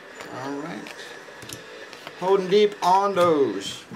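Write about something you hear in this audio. Trading cards slide and flick against each other in a person's hands.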